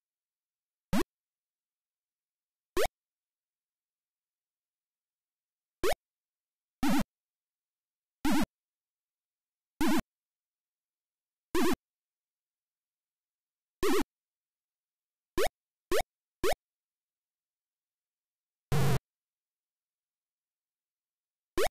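Short electronic beeps from a retro computer game sound now and then.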